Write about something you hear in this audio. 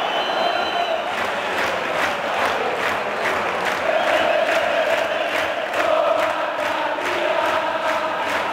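Many fans clap in rhythm.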